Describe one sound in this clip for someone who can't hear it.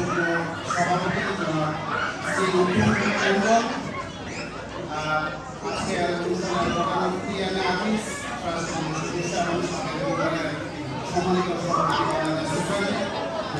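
A man speaks steadily into a microphone over loudspeakers in a large echoing hall.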